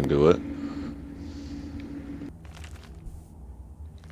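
Paper pages rustle as a book opens.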